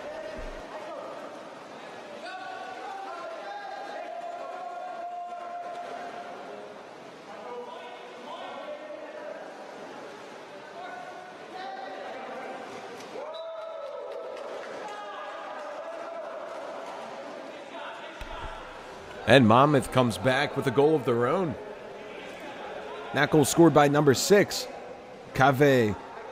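Water splashes as swimmers thrash and kick in a pool.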